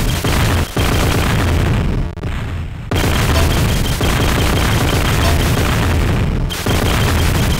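Loud game music plays throughout.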